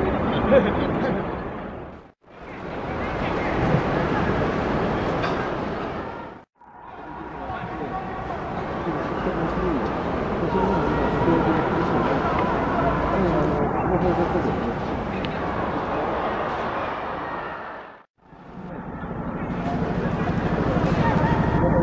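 A large stadium crowd murmurs and cheers in a wide open space.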